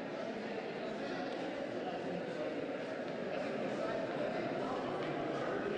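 A crowd of adults chatters all around in a busy, echoing room.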